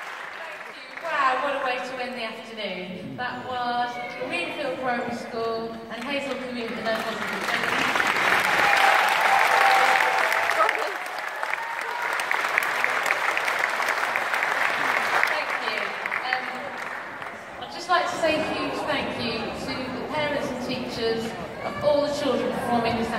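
A children's brass band plays in a large echoing hall.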